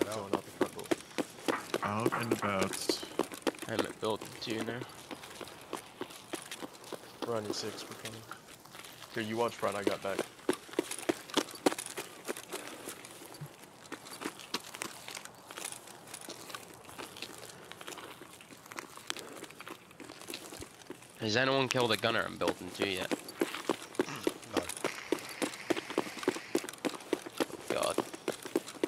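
Footsteps tread steadily on pavement and gravel.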